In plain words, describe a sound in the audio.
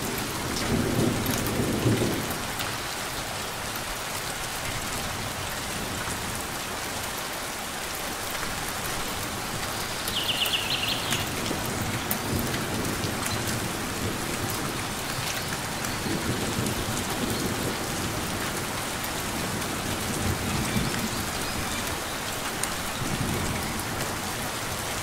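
Light rain patters steadily outdoors.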